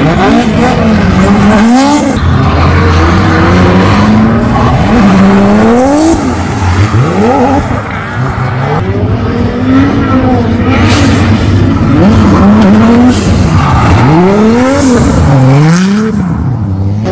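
A car engine revs hard, rising and falling over and over.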